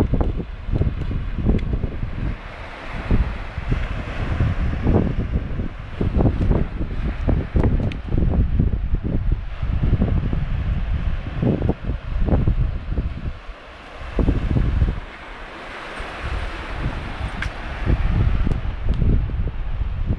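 Waves break and wash onto the shore nearby.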